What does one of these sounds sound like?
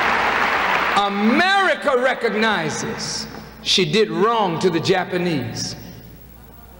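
A man speaks forcefully into a microphone in a large hall.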